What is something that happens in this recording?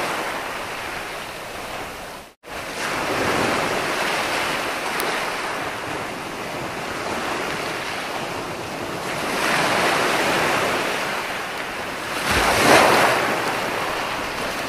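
Waves roll in and break onto the shore, swelling and rushing in surges.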